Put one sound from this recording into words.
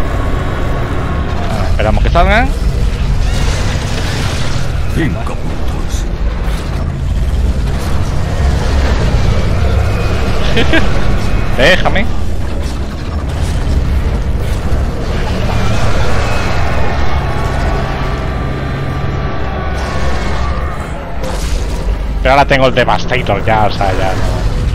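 A vehicle engine rumbles steadily in a game.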